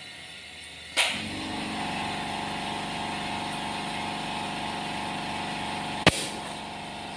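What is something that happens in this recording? Air hisses steadily from a hose into a tyre.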